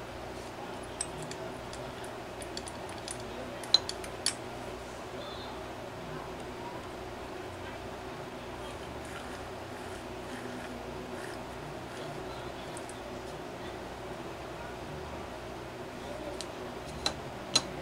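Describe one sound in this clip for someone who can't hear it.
Metal parts clink and tap as a small engine part is handled.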